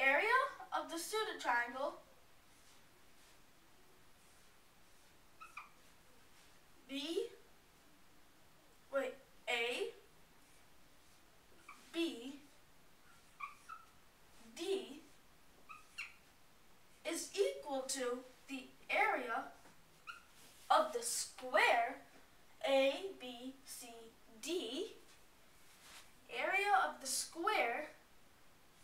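A boy explains calmly, with pauses.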